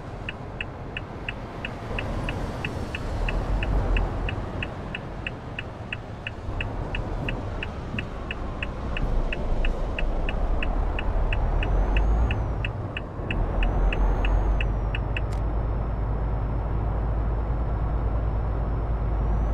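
A truck engine rumbles steadily, rising and falling as it drives.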